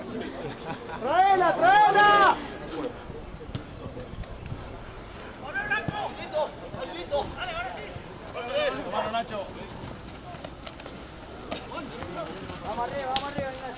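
Young men shout to each other across an open field, some distance away.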